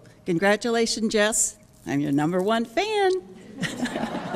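A middle-aged woman speaks emotionally into a microphone in an echoing hall.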